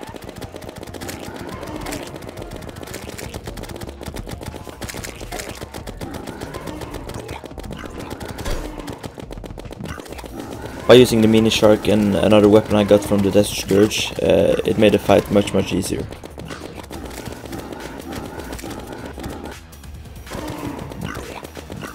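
A boss creature in a game is hit with crunchy impact sounds.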